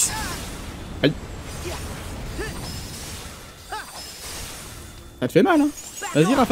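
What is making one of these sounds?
Swords clash and magic blasts burst in quick hits.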